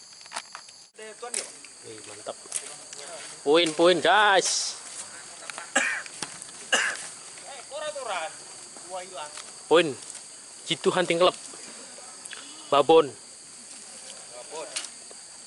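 Men talk and call out to each other outdoors.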